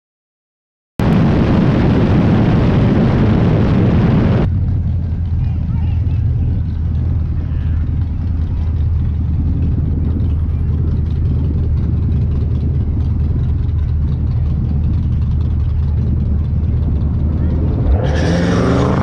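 A car engine idles with a deep, steady rumble close by.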